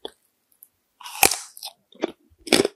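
A crisp biscuit crunches as it is bitten close up.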